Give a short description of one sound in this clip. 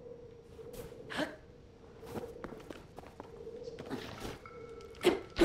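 Wind rushes past in short gusts.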